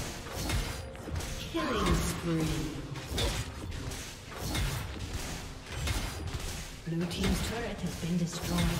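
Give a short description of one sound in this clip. Video game combat effects clash and crackle with sharp hits.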